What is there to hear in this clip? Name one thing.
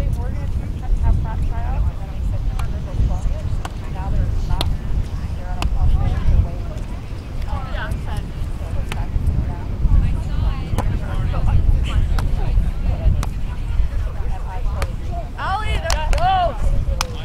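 Wind blows steadily across the microphone outdoors.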